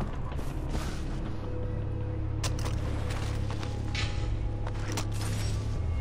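Leaves rustle as someone pushes through plants.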